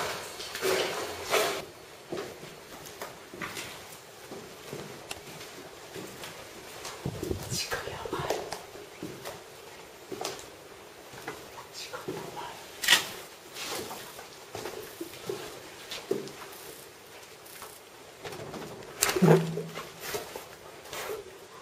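Footsteps shuffle on a concrete floor and stairs.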